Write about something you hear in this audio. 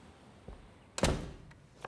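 A door latch clicks open.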